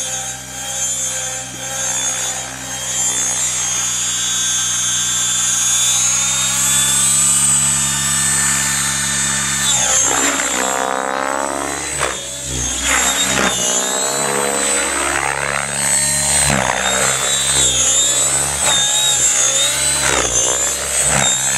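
A small model plane engine buzzes at a high pitch, revving up and then rising and falling in pitch as the plane flies past overhead.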